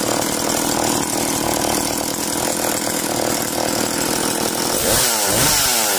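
A chainsaw engine idles with a loud, steady rattle.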